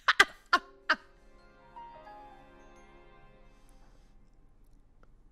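A short, somber musical jingle plays and fades.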